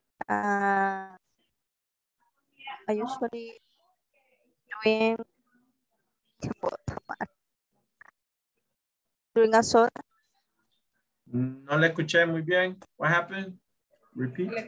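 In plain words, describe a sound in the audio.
A woman speaks calmly through a headset microphone over an online call, in short phrases.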